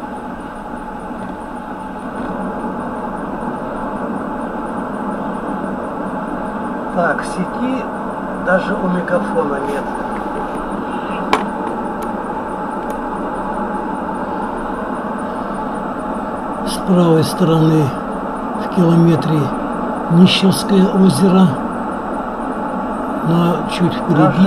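Tyres hum steadily on a wet road.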